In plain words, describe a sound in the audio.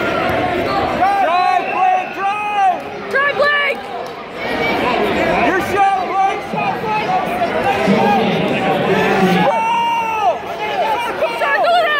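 Spectators shout loud encouragement from close by.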